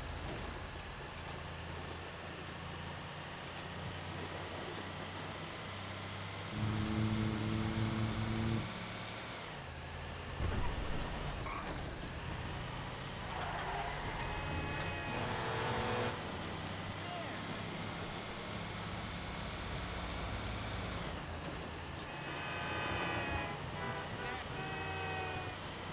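A heavy truck engine rumbles steadily as it drives.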